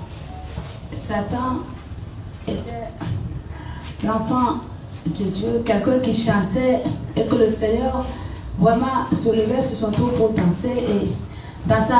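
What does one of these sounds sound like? A middle-aged woman speaks into a microphone over a loudspeaker.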